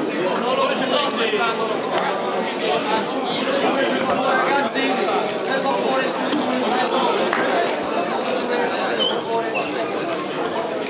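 A crowd of people chatter and call out loudly in a large echoing hall.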